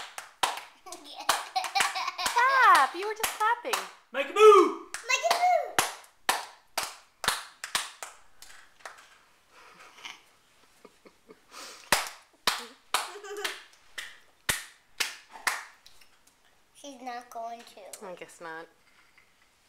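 A baby squeals and babbles happily close by.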